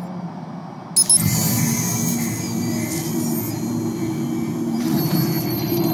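An electronic chime and glitchy beeps sound.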